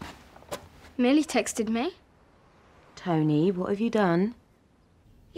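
A woman speaks sternly and close by.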